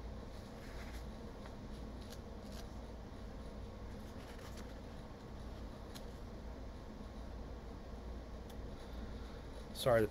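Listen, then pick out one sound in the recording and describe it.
Playing cards flick and rustle in a man's hands.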